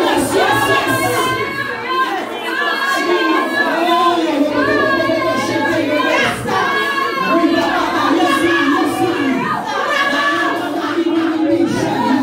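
A man prays loudly and forcefully close by.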